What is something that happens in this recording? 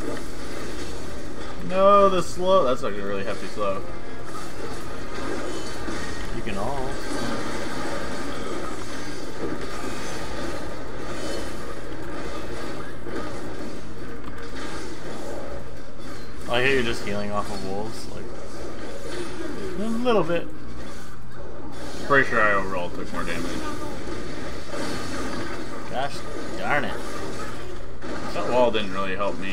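Fantasy combat sound effects of spells and blows clash.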